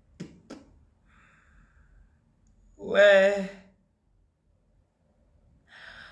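A woman laughs softly.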